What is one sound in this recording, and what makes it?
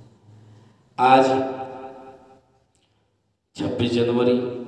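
A man sings into a microphone in held, melodic phrases.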